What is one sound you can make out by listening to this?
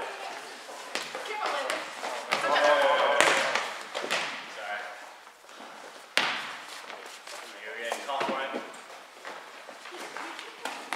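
A volleyball smacks off players' hands, echoing in a large hall.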